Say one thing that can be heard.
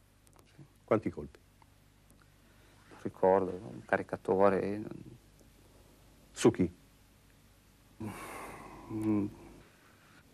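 A man speaks slowly and with emotion, close by, with long pauses.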